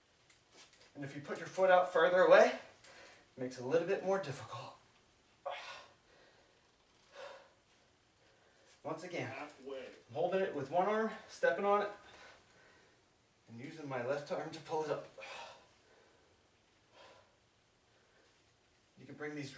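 A man talks calmly in short bursts with pauses.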